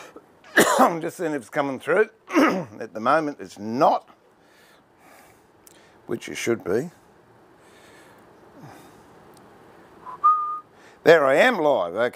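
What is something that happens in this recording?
An elderly man talks calmly and close by, in pauses.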